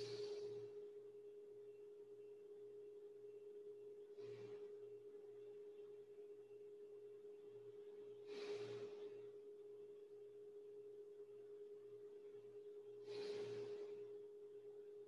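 A woman breathes out in long, heavy breaths now and then.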